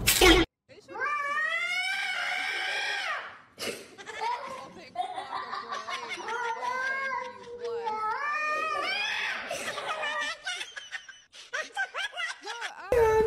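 A cat meows repeatedly in rising and falling cries.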